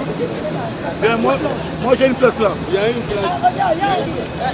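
Several voices talk loudly over each other close by.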